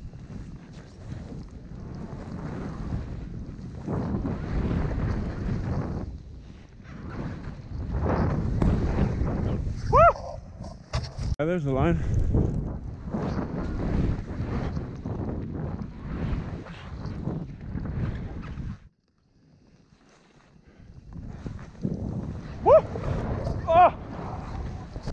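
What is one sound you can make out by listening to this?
A snowboard hisses and scrapes through deep powder snow.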